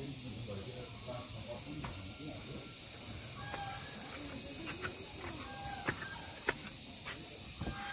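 Footsteps walk along a path toward the listener.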